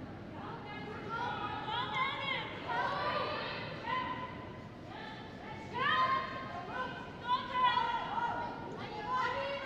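Young women shout loudly to each other.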